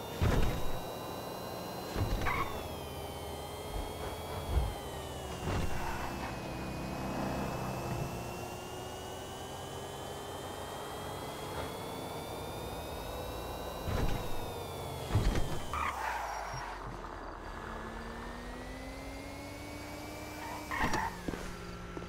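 A car engine hums steadily, rising and falling in pitch as the car drives.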